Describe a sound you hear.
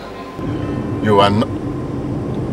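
A man speaks briefly and close by.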